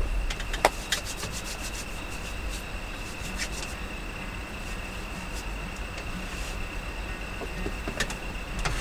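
A man rubs his hands together.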